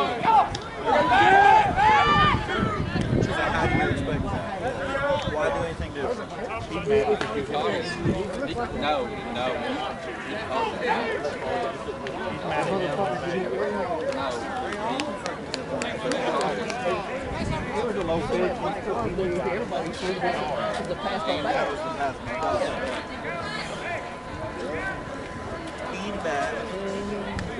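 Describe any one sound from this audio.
Several men talk and call out at a distance outdoors.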